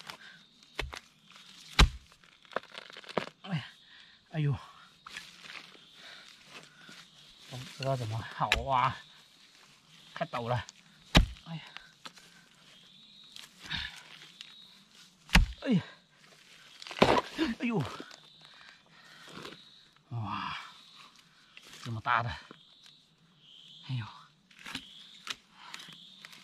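A hoe thuds into the soil in sharp chops.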